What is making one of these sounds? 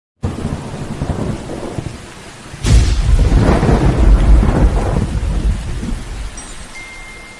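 Thunder cracks and rumbles loudly.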